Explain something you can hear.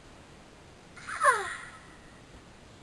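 A young woman screams loudly with a falling pitch, close by.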